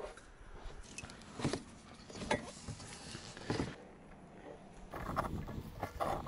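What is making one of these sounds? A metal wrench clicks against a plastic pipe.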